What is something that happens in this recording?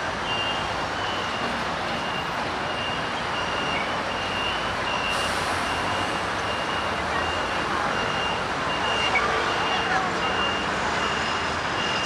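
Motor scooters drive past.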